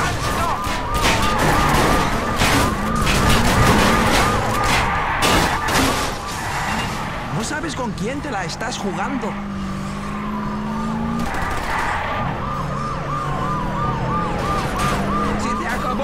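Police sirens wail close behind.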